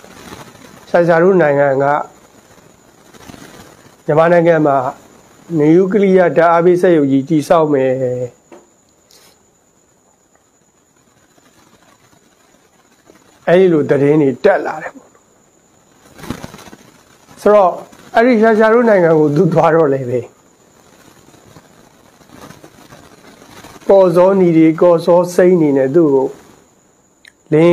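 A man speaks calmly into a microphone close by, in short phrases with pauses.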